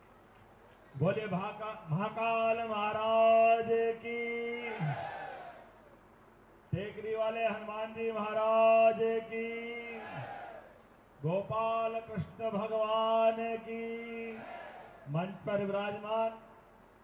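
A man speaks forcefully into a microphone, heard loudly through loudspeakers with an echo.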